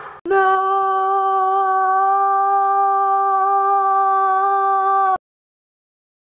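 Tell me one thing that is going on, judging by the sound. A young man hums a long, steady note close by.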